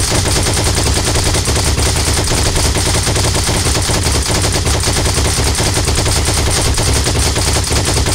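A heavy machine gun fires in rapid continuous bursts close by.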